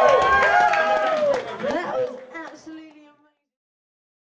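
A group of men sing loudly together.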